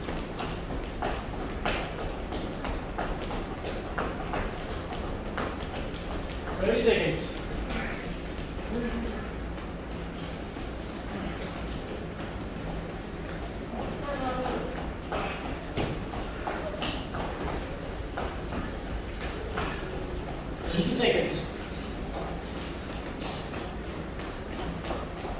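Feet thud and shuffle on a hard floor during exercises.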